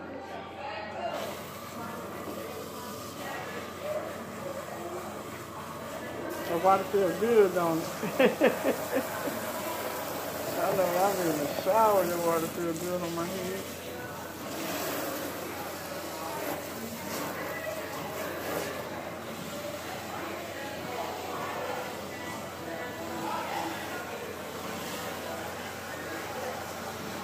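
Water sprays and splashes steadily.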